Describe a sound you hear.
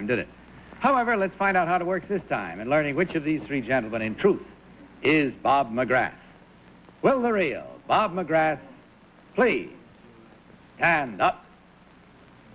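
A man speaks clearly through a microphone.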